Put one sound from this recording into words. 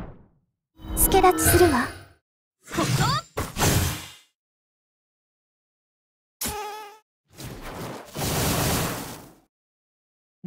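Blades slash and magic blasts crackle in short bursts.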